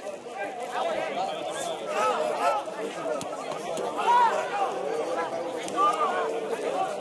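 Men and women chatter and call out nearby in the open air.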